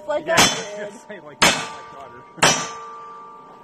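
A gun fires sharp shots outdoors.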